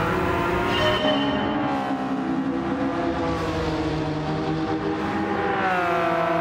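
A racing car speeds past with a loud engine roar.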